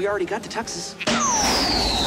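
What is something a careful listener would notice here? A man speaks excitedly nearby.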